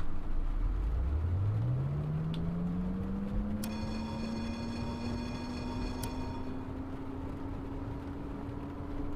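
Rain patters on a windscreen.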